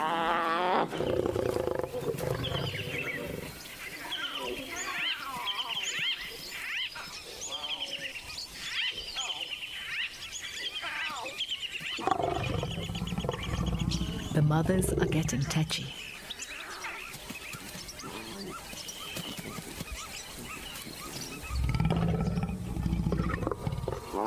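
A lioness snarls and growls loudly.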